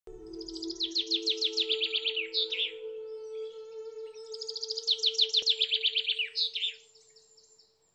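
A small bird sings a fast, trilling song in two bursts.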